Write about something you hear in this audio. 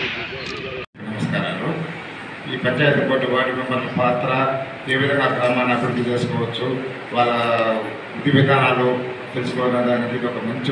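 A middle-aged man speaks into a microphone over a loudspeaker with animation.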